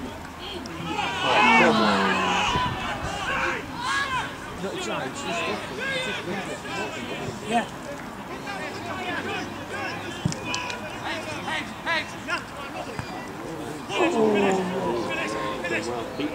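Spectators cheer loudly at a goalmouth scramble.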